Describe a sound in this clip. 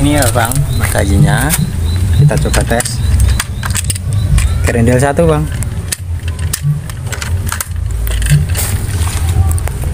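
Metal parts of an air rifle click as a man handles the rifle.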